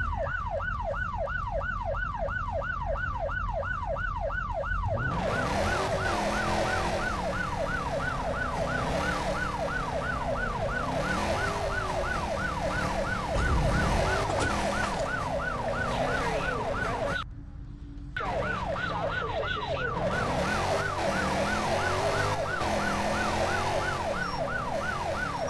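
A police siren wails in fast, repeating sweeps.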